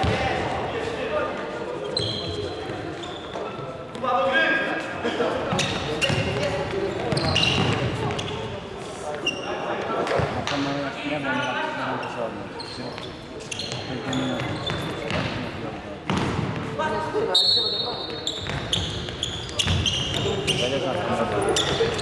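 A ball is kicked with dull thuds that echo around a large hall.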